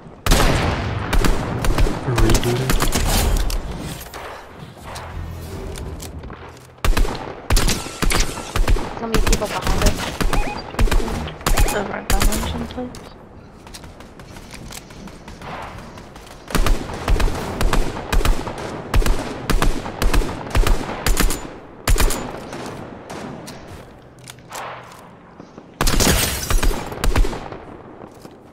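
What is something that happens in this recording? A rifle fires shot after shot in quick bursts.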